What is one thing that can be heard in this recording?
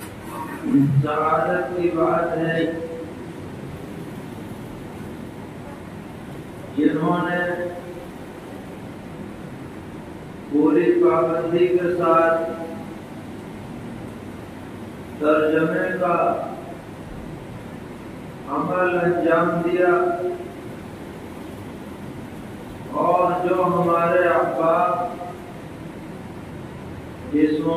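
An elderly man speaks slowly into a microphone in short phrases with long pauses.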